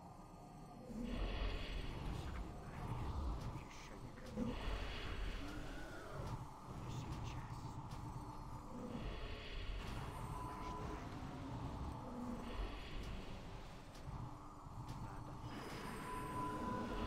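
Magic spells whoosh and shimmer in repeated bursts during a fight.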